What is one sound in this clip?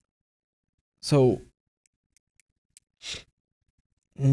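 A young man speaks calmly and close by, in short phrases.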